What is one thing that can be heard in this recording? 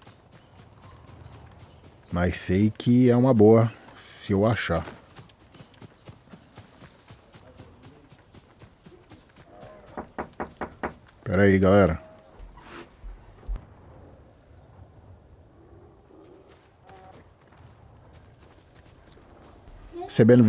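Footsteps rustle quickly through tall grass.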